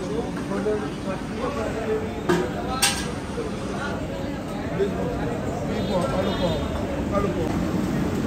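A crowd murmurs in a busy room.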